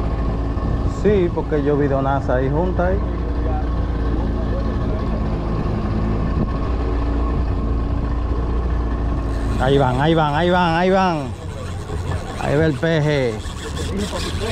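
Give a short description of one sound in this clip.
A man talks loudly over the motor.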